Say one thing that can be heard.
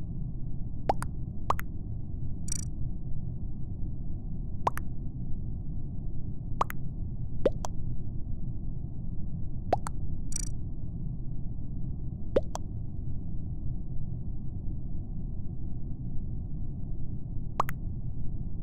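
Short chat alert blips sound now and then.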